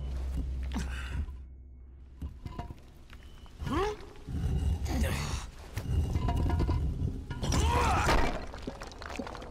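Hands scrape and grip on rough stone while climbing.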